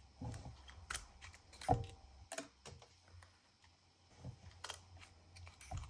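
A hand punch tool clicks and clunks as it presses through card.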